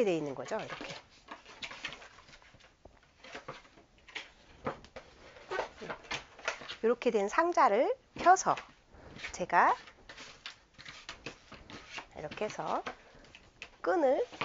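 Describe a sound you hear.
A cardboard box rustles and taps as it is handled.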